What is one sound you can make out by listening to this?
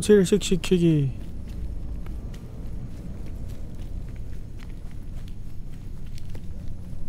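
Small footsteps patter softly on stone.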